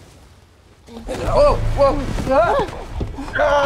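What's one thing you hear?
A man speaks loudly and with effort.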